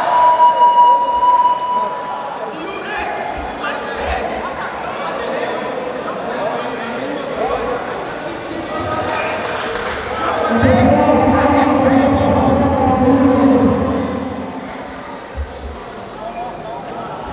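A crowd chatters and calls out in a large echoing hall.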